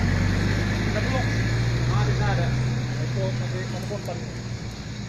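Men talk in the distance outdoors.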